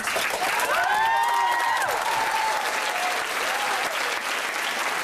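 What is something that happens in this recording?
Young people in a crowd cheer and whoop.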